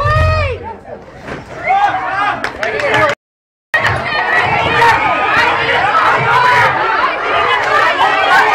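A crowd of children and teenagers chatter and shout excitedly in a large echoing room.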